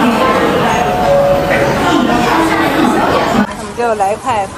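A crowd chatters loudly.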